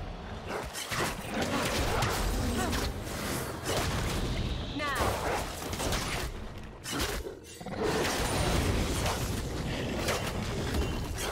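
Game weapons clash and hit in a rapid flurry.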